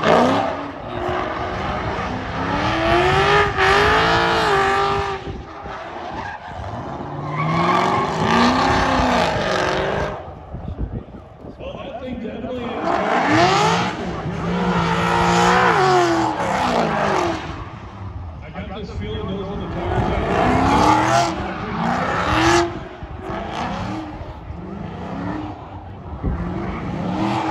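A car engine revs hard and screams in bursts.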